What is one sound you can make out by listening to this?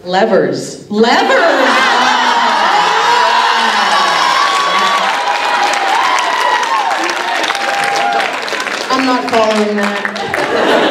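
An audience cheers and screams loudly.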